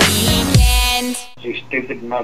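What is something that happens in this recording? A young woman sings.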